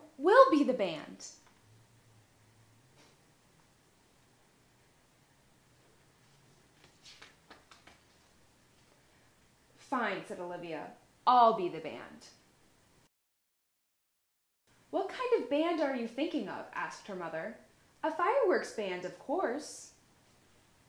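A young woman reads a story aloud expressively, close by.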